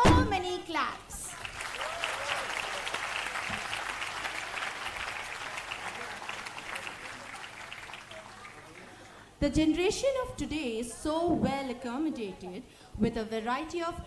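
A young woman speaks with animation through a microphone over loudspeakers in a large hall.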